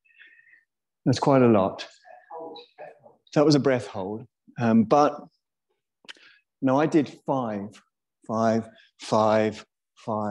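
A man speaks calmly and close to a microphone, with pauses.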